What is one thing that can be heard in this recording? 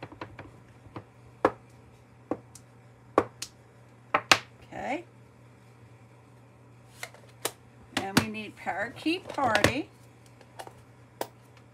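A stamp taps lightly on paper and an ink pad, with small knocks.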